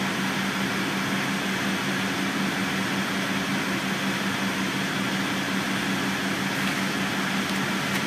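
A car drives slowly past on the street.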